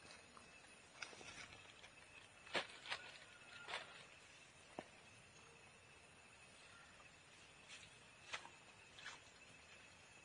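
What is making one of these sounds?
A stick swishes and thrashes through tall grass.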